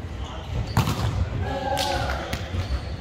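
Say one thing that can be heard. A volleyball is struck hard with a sharp slap in a large echoing hall.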